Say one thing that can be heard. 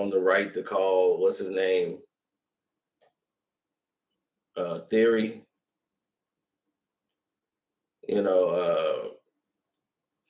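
A man speaks calmly into a nearby microphone, in short phrases with pauses.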